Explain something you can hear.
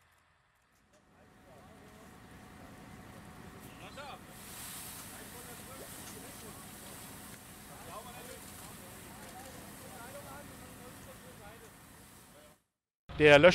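Flames roar and crackle.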